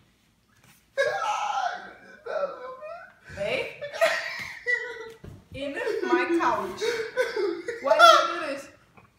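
A young woman shrieks and laughs up close.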